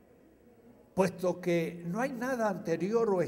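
An elderly man reads aloud calmly into a microphone.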